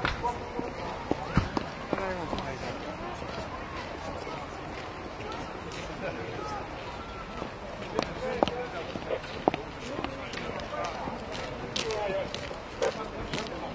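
Soldiers' boots tramp on pavement as they march past.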